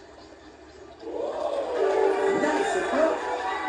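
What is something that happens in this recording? A video game crowd cheers loudly.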